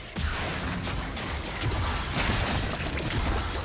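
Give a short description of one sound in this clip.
Spells and weapons crackle and blast in a fast fight.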